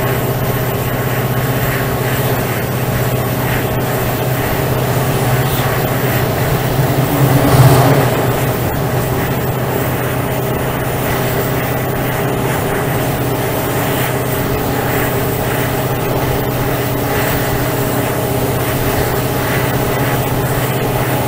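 Train wheels clatter rhythmically on the rails.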